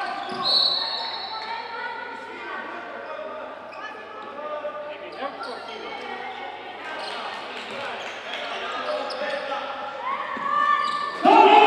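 Sport shoes squeak on a hard floor in a large echoing hall.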